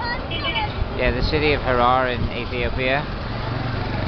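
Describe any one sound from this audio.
A woman calls out loudly nearby.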